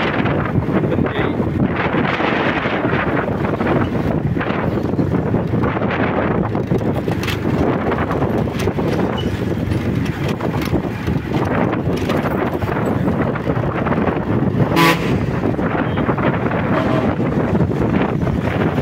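Wind rushes loudly past a moving motorbike.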